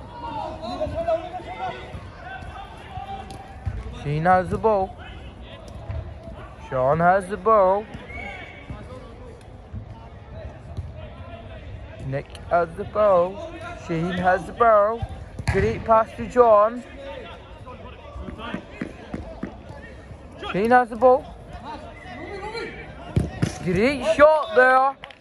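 Men shout to each other outdoors during a football game.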